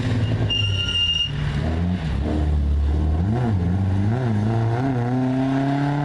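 A rally car engine roars loudly and revs up and down as the car drives past.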